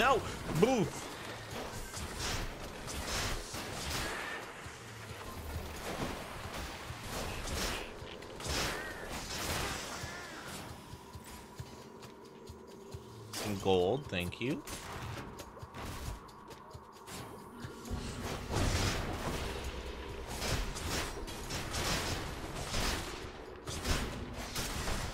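Game combat sounds clash and burst with magical effects.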